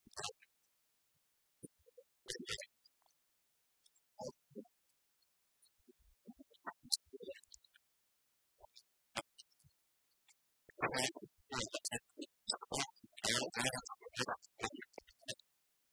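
Keys click on laptop keyboards.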